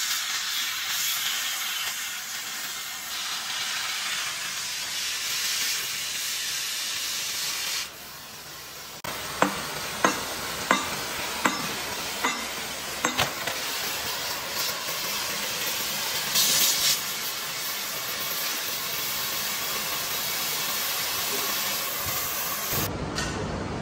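A cutting torch hisses and roars steadily against metal.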